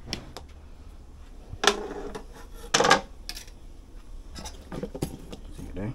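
A metal spoon clinks against a metal bowl.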